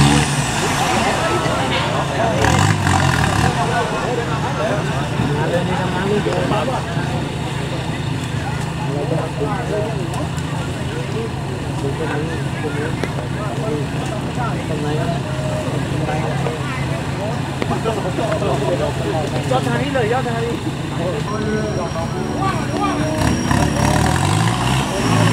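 A truck engine idles with a deep, steady rumble close by.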